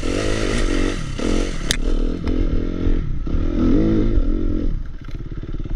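Branches scrape and brush against the bike.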